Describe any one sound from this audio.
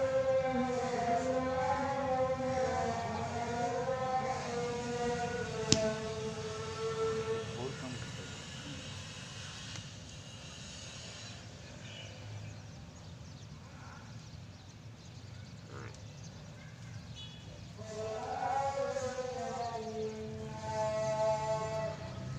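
A buffalo calf bellows in long, wavering calls.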